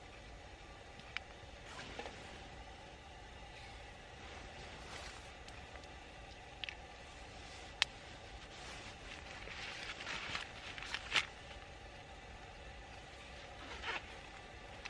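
A camping stove burner hisses steadily.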